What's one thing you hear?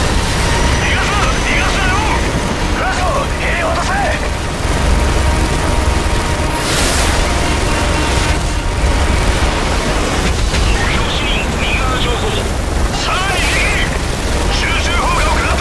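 A helicopter's rotor thumps.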